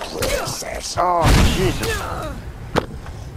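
A fireball bursts with a loud whooshing roar.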